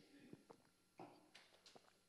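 A glass clinks softly on a table.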